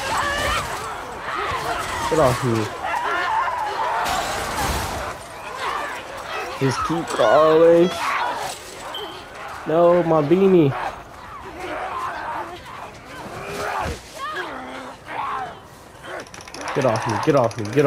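A young man shouts in panic.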